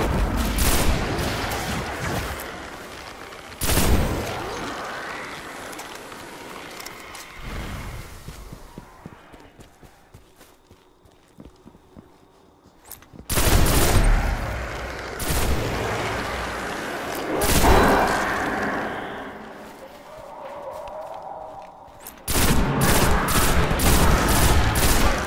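A rifle fires sharp shots in bursts.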